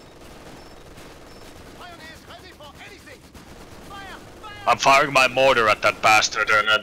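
Gunfire crackles in a distant battle.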